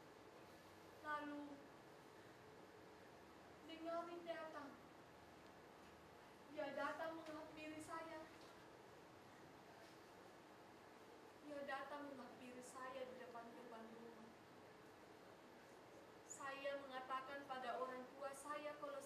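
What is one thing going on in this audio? A woman sings in bursts in a reverberant hall.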